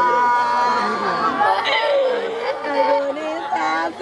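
A man sobs loudly.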